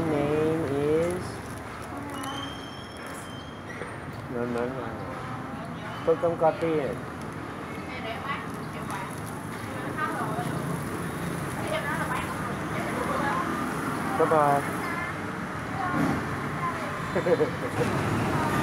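A young girl talks and giggles close by.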